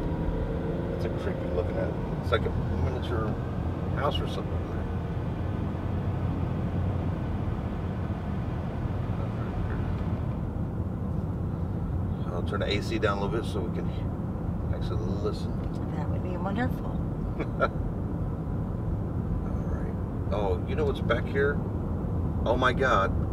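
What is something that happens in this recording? Tyres rumble steadily on a paved road from inside a moving car.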